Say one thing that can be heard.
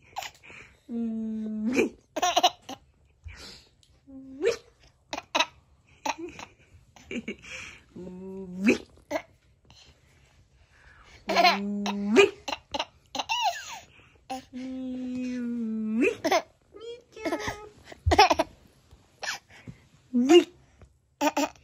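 A baby laughs and squeals close by.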